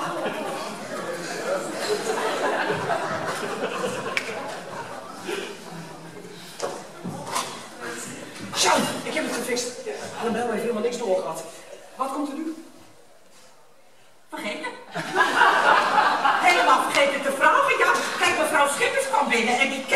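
An adult woman speaks loudly and with animation in a large hall.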